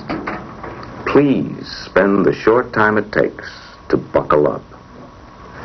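A middle-aged man speaks calmly and earnestly, close to a microphone.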